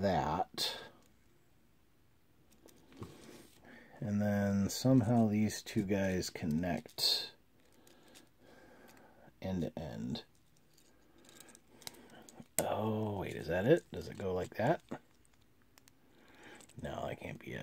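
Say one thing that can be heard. Small plastic toy parts click and snap as they are handled.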